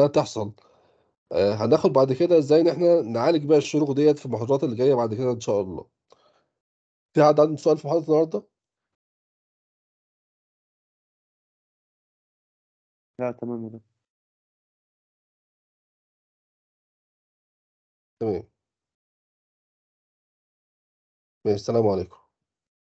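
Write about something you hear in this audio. A man speaks calmly through an online call, in bursts with pauses.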